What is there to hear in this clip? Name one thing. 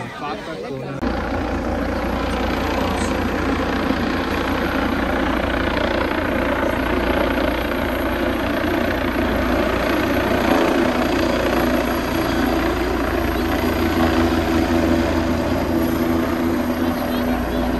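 A helicopter's rotor thumps loudly overhead with a steady roar.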